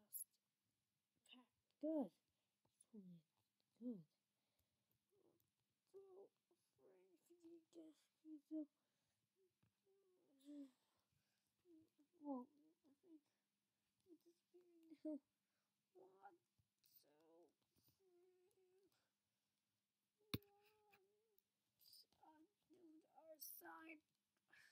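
Plastic toy parts click and tap as hands move them.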